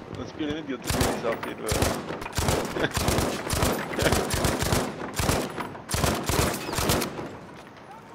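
A rifle fires a rapid string of loud shots.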